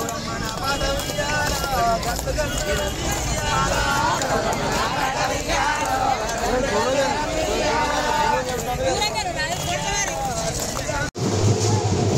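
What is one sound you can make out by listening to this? A group of women sing together loudly.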